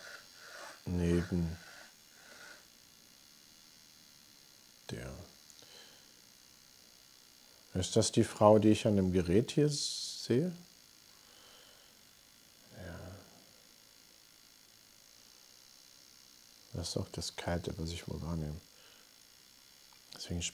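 A middle-aged man speaks calmly into a microphone, in bursts with pauses.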